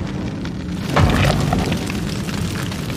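Flames roar in a sudden burst.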